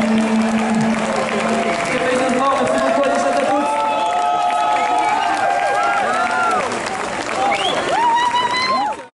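A band plays loudly through loudspeakers in a large echoing hall.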